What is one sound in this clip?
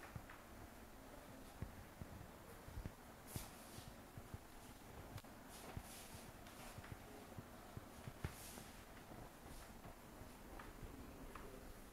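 A cloth wipes and squeaks across a whiteboard.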